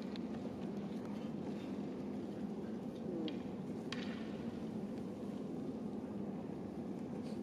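The murmur of a crowd fills a large echoing hall.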